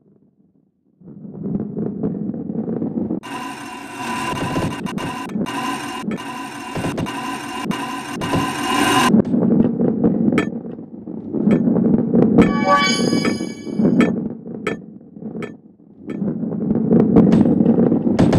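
A heavy ball rolls with a low rumble.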